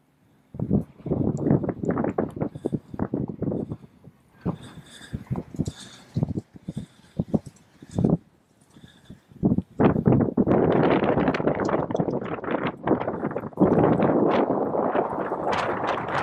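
A horse's hooves thud on grass at a gallop.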